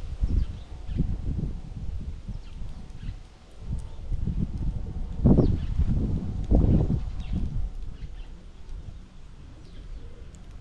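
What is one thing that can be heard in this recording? Small birds chirp in short, high calls.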